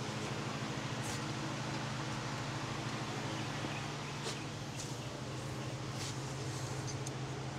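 Metal tools clink and tap against a vehicle's parts.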